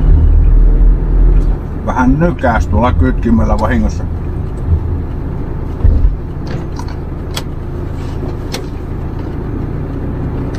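A car engine hums steadily with road noise from inside a moving car.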